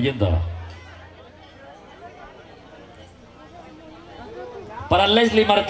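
Men and women chat quietly nearby at a gathering.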